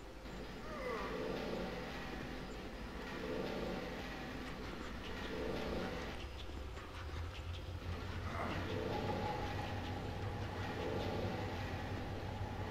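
A heavy stone block grinds and scrapes as it is pushed across the floor.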